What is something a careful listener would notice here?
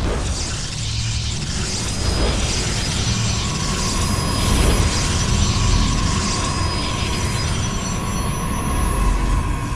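Game sound effects hum and shimmer as units warp in.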